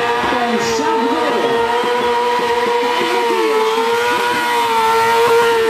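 A motorcycle's rear tyre screeches and hisses as it spins on the road.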